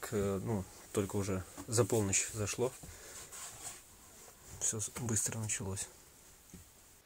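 A young man speaks quietly and closely into a microphone, muffled by a face mask.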